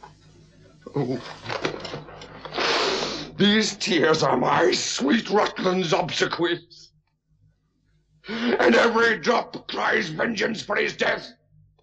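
A woman weeps and speaks through tears.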